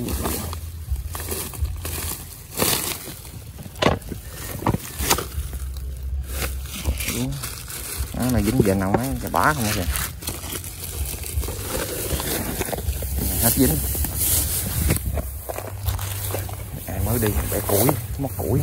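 Grass leaves rustle and brush close by.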